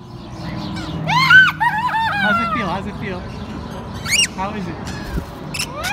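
A young girl laughs and squeals with delight close by.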